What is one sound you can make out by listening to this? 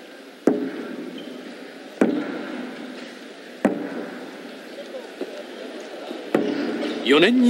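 A large drum is struck hard a few times, booming and echoing through a large hall.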